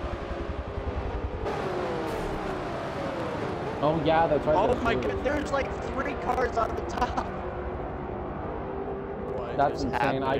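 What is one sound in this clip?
Racing car engines roar steadily at high speed.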